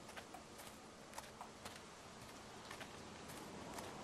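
Footsteps crunch softly on gravel.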